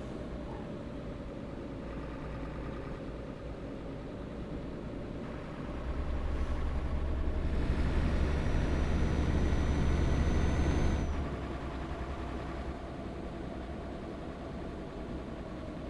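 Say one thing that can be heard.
A truck engine hums steadily as it drives, growing louder for a while before settling again.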